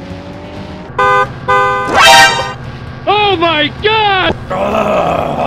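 A train horn blasts several times.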